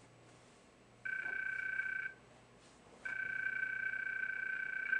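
A phone call rings with a steady electronic tone in repeated bursts.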